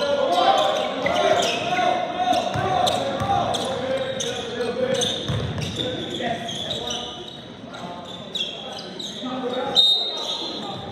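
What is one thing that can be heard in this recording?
Young men call out to each other loudly.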